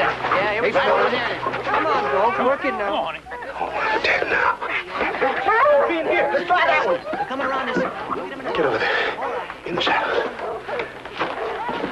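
Several men shout and yell loudly in a struggle.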